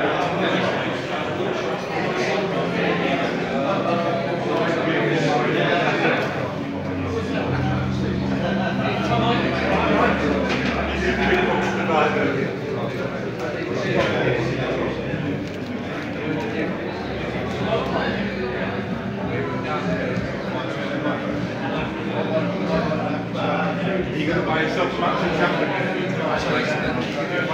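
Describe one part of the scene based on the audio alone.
A crowd of men and women chatter nearby in an echoing room.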